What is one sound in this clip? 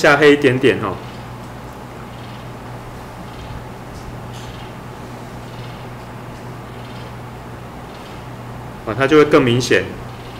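A watercolour brush dabs softly on paper.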